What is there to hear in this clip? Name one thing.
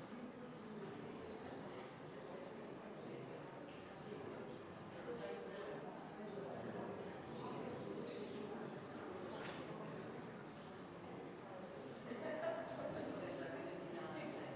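A seated audience murmurs and chatters quietly in a large, echoing hall.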